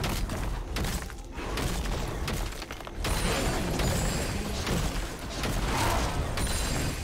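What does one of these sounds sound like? Video game spell effects whoosh and crackle during a battle.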